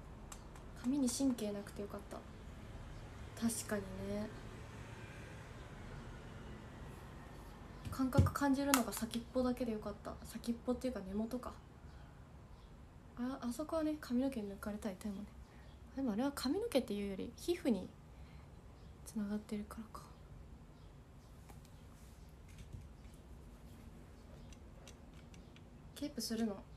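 A young woman talks softly and casually, close by.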